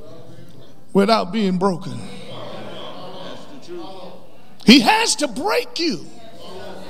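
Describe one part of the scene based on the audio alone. A middle-aged man preaches with animation into a microphone, in bursts separated by pauses, in an echoing hall.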